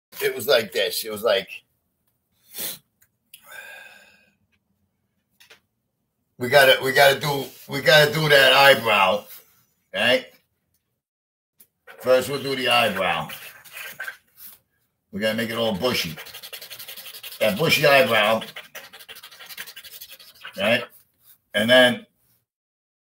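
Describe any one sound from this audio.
An older man talks calmly close by, in short bursts.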